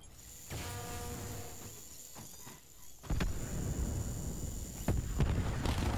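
A small remote-controlled vehicle whirs along.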